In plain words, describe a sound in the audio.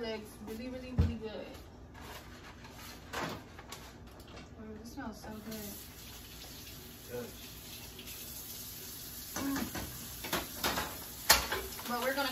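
Utensils clink and knock against pans.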